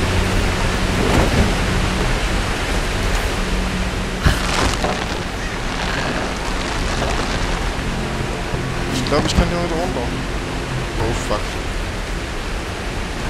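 Water rushes and churns steadily below.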